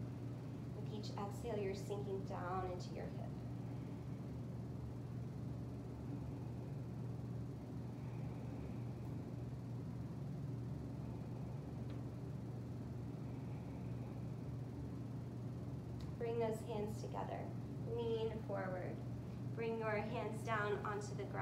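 Electric fans hum steadily.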